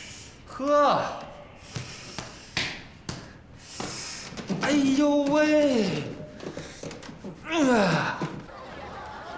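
A man groans and cries out loudly in pain, close by.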